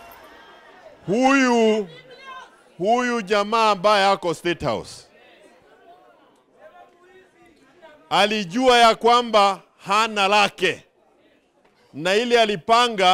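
A man speaks forcefully into a microphone over loudspeakers, in bursts with pauses.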